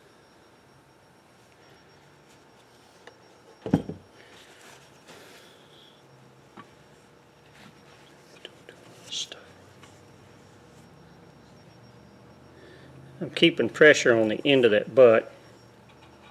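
A paper towel rubs and rustles against a rod handle.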